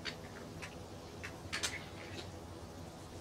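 Metal crutches knock and clatter against each other.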